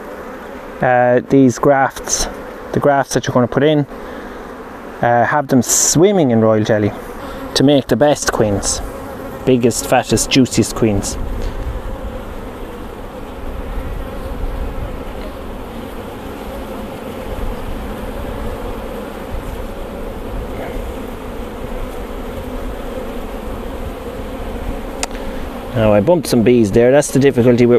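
Honeybees buzz over an open hive.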